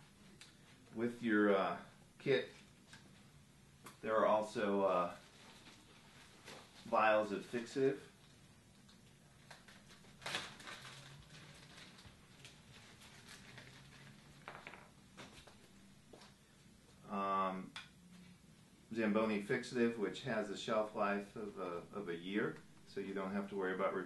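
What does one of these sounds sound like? A middle-aged man speaks calmly and clearly, in short bursts.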